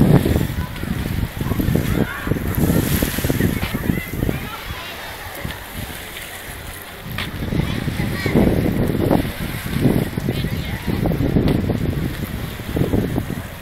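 Wind gusts and buffets loudly outdoors by the sea.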